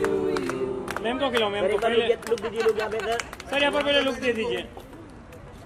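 A group of people clap their hands in rhythm.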